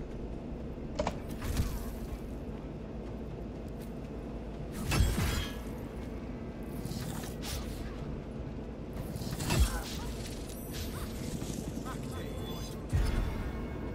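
Magic blasts whoosh and crash in bursts.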